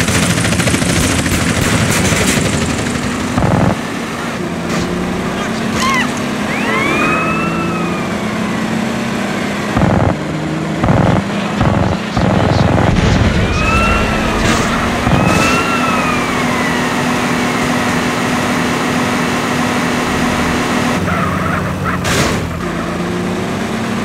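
A car engine hums steadily as a car drives along a street.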